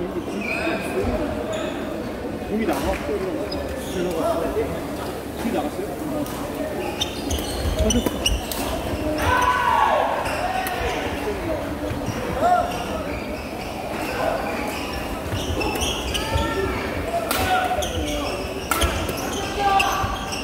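A large crowd chatters throughout a big echoing hall.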